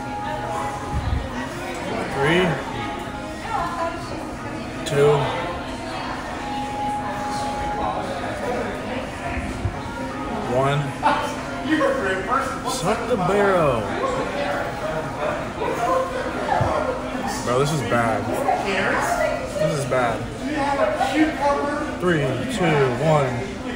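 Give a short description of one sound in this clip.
Diners chatter in the background.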